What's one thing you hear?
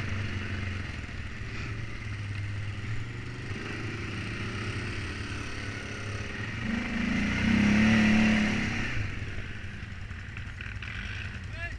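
Tyres crunch over a bumpy dirt track.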